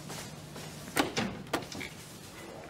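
A door clicks and swings open.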